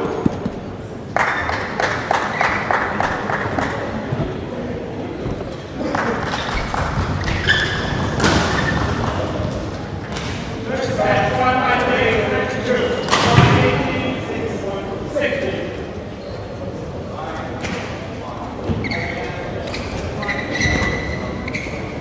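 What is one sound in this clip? Shuttlecocks are struck with sharp pops in a large echoing hall.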